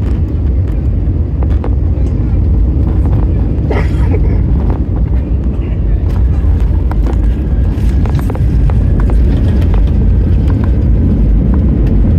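Plane wheels rumble and thump on the runway.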